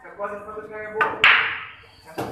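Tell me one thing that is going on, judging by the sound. Billiard balls clack and scatter after a cue strike.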